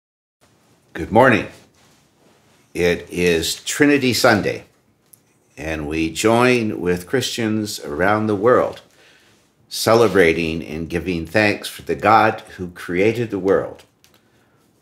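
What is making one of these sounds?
An elderly man speaks calmly and close to the microphone, reading aloud.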